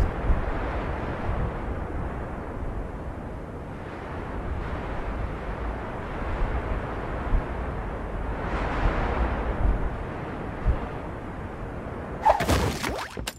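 Wind rushes loudly past a glider in flight.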